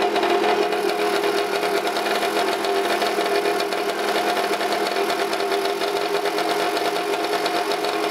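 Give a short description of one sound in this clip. A small engine idles close by with a steady, buzzing hum.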